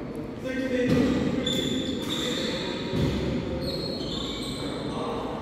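Rackets hit a shuttlecock back and forth in a large echoing hall.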